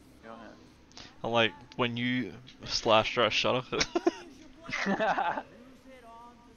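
A young man talks and laughs with animation, close to a microphone.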